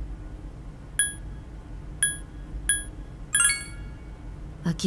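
Short electronic chimes beep as a menu choice moves.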